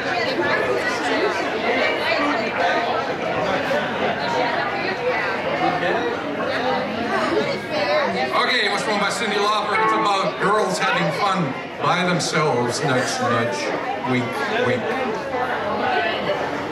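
A live band plays outdoors through loudspeakers.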